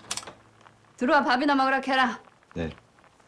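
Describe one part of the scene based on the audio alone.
An elderly woman speaks calmly nearby.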